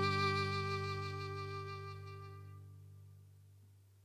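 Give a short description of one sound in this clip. A held violin note rings out and slowly fades.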